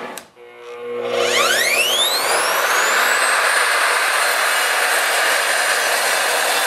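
A power saw motor spins up and whirs steadily.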